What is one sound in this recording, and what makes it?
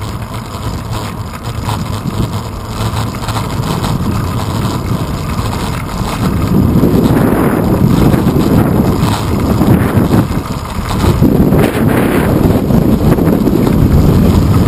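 Wheels roll steadily over pavement.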